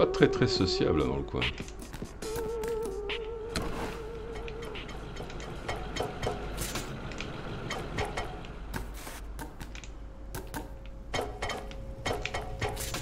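Quick footsteps tap on metal.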